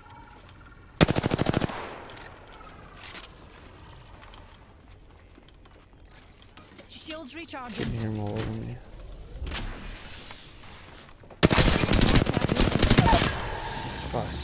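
Rapid bursts of automatic gunfire ring out loudly.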